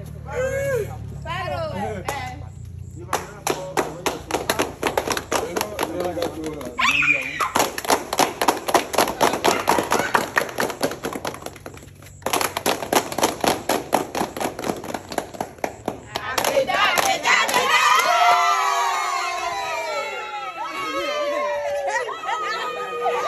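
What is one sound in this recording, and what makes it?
A group of women sing together outdoors.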